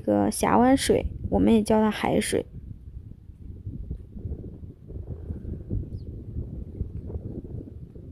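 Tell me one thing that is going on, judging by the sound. Small waves lap gently against a stony shore.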